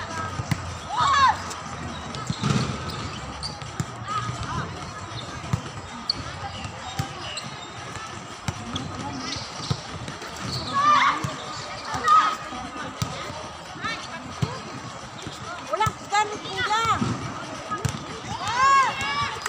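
A volleyball thumps off players' arms.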